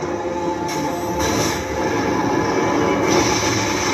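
Explosions burst with a fiery roar.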